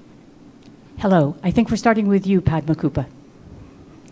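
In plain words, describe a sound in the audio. An older woman speaks calmly into a microphone over a loudspeaker.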